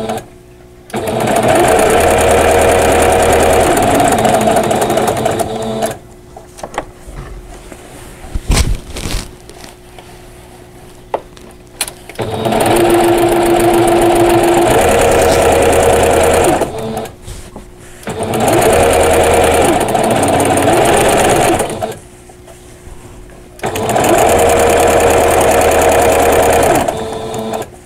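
A sewing machine whirs in bursts as it stitches fabric.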